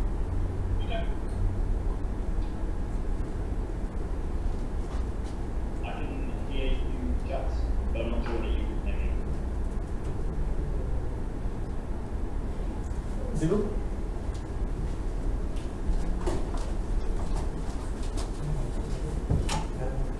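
A man speaks calmly over an online call through loudspeakers in a large echoing hall.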